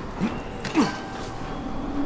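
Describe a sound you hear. Hands grab and scrape against a rough stone ledge.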